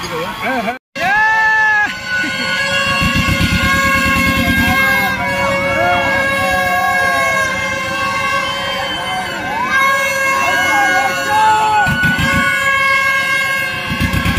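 Young people scream and shout on a swinging fairground ride.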